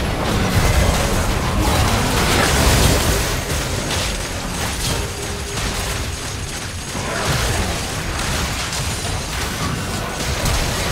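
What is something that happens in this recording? Game spell effects crackle and burst in a fast battle.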